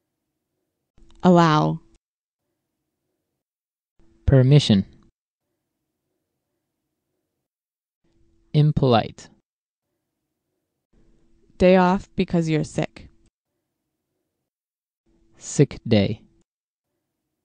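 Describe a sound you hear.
A woman reads out single words clearly into a microphone, with pauses between them.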